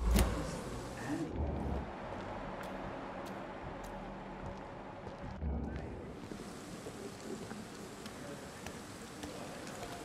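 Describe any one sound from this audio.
Footsteps fall on a wet stone street.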